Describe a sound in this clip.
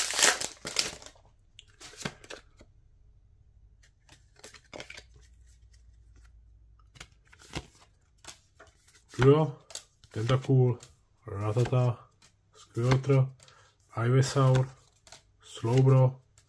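Trading cards rustle and flick against each other.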